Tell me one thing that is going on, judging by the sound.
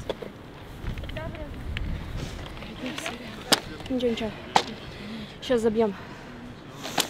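Young women talk and call out nearby outdoors.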